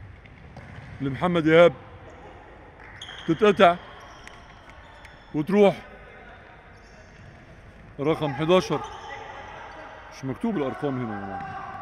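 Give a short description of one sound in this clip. Young men shout short calls across an echoing indoor hall.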